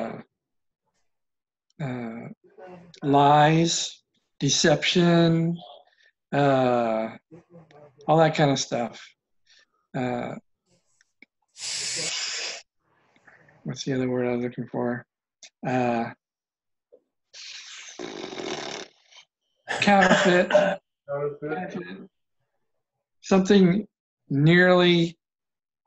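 An older man talks calmly and with feeling over an online call, pausing between phrases.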